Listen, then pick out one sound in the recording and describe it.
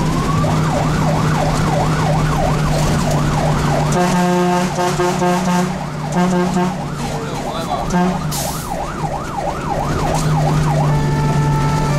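A siren wails rapidly up and down close by.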